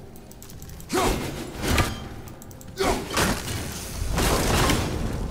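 An axe strikes with a heavy thud.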